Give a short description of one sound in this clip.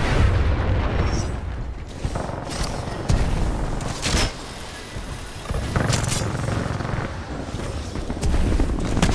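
Quick footsteps thud on a hard floor as someone runs.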